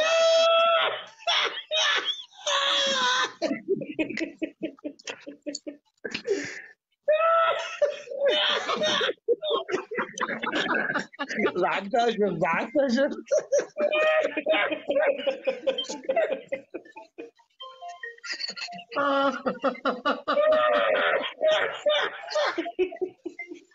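A man laughs loudly and heartily through an online call.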